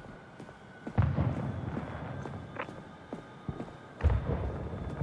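Heavy thuds boom.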